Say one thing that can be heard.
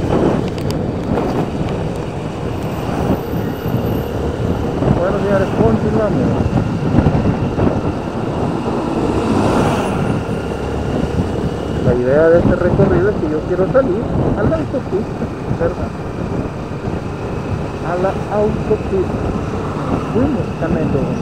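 Wind roars steadily against a moving motorcycle.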